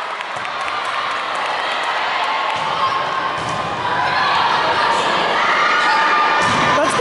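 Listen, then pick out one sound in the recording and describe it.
A crowd of voices chatters and cheers in a large echoing gym.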